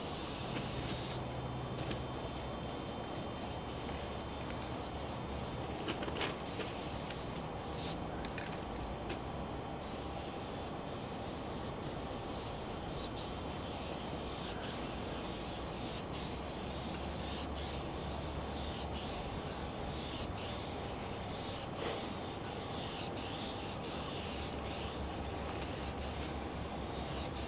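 Spray paint hisses from a can in short bursts.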